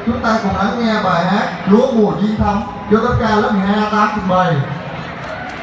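A man sings into a microphone through loudspeakers in an echoing hall.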